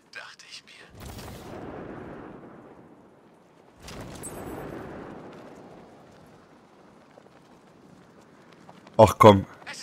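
Wind rushes loudly past a figure gliding through the air.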